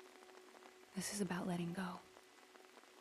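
A young woman speaks softly and earnestly, close by.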